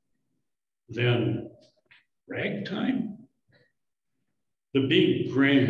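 An elderly man speaks calmly into a microphone, heard through an online call.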